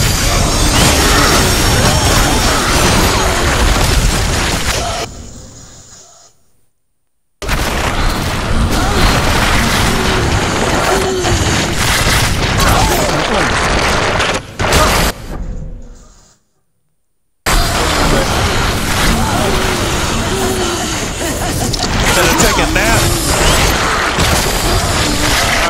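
Swords clash and slash in a game battle.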